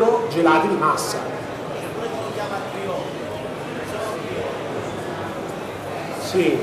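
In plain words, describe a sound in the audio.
Many people chat in a murmur in the background.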